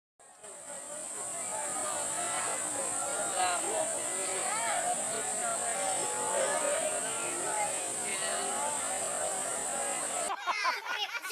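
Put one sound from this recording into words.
A crowd of young people murmurs and chatters outdoors.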